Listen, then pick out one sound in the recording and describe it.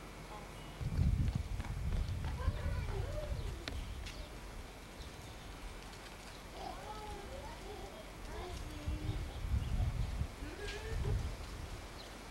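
A young child babbles and squeals nearby.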